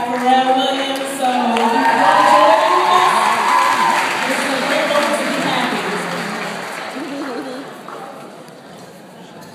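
A large choir sings loudly in a large hall.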